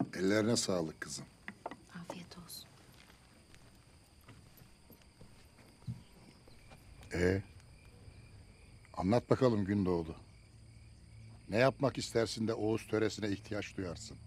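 An elderly man speaks in a low, serious voice.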